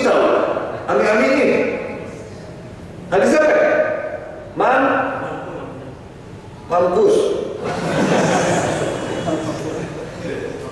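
A man speaks with animation into a microphone in a room with echo.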